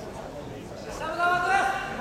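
A man calls out loudly across a large echoing hall.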